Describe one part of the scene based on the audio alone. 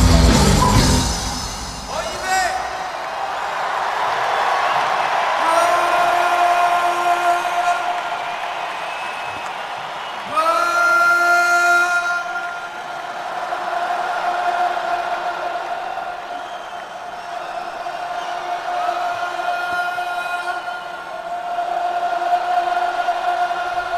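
A rock band plays loudly through big loudspeakers in a large echoing stadium.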